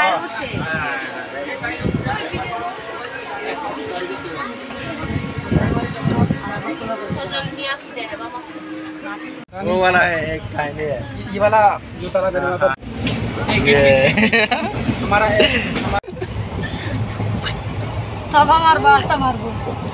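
Men and women chatter close by.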